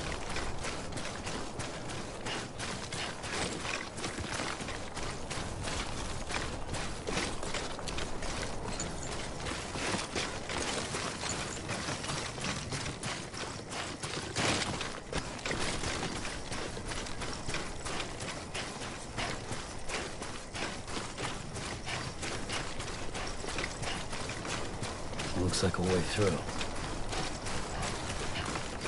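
Footsteps crunch steadily on loose rocky ground.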